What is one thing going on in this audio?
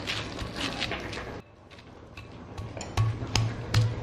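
A stone pestle grinds and knocks against a stone mortar.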